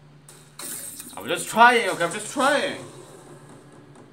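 A card game plays a loud crashing attack effect.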